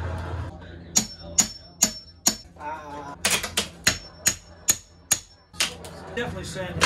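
A hammer knocks sharply against wood, again and again.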